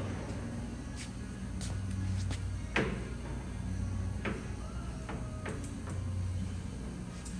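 Metal levers click and clunk.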